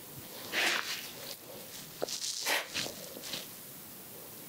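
A young woman whispers close to the microphone.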